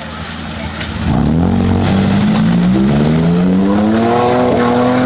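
Mud and water splash under spinning tyres.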